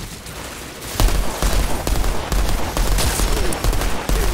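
A rifle fires in rapid bursts of loud, booming shots.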